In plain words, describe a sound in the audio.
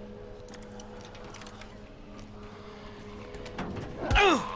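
Metal lock picks click and scrape in a lock.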